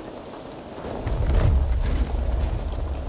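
A heavy crate lid thuds open.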